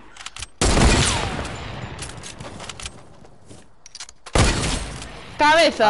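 Loud gunshots ring out and echo away.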